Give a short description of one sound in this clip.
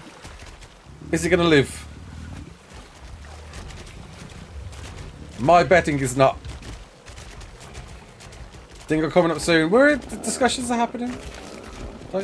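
A man speaks with animation through a close microphone, in short bursts.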